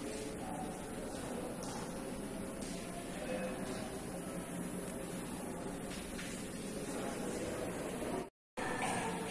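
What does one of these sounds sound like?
A man speaks calmly and close by, his voice slightly muffled.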